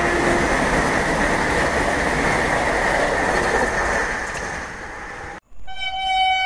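A passing train rumbles and clatters loudly along the tracks close by.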